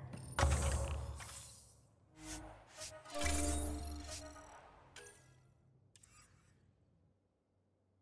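Electronic menu tones beep and chime.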